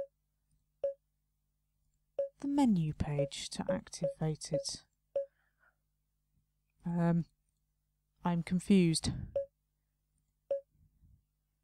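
Short soft blips sound as menu buttons are clicked.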